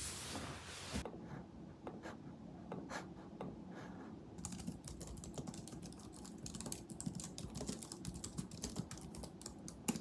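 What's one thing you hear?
Fingers tap quickly on a keyboard.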